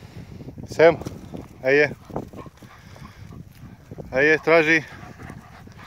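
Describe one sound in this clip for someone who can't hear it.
Dogs scamper over dry, lumpy soil.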